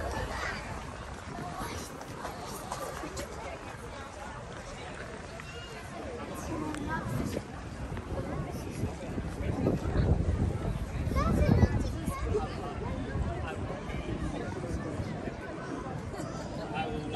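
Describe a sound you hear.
Wind blows against a microphone outdoors.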